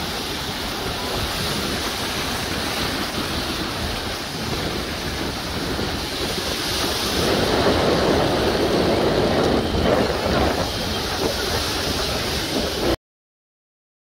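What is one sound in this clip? Sea waves roll and break in a steady rush.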